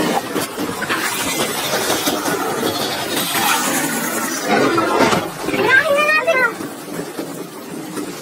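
A young boy speaks urgently.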